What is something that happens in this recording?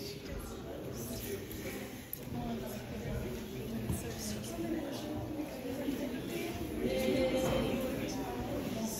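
Several men and women chat at once nearby in a room with a slight echo.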